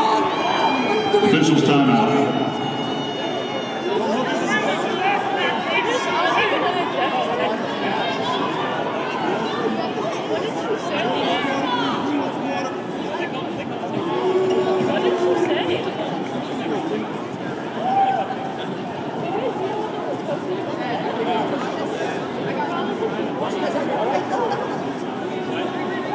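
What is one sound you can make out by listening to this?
A crowd murmurs and chatters throughout a large echoing arena.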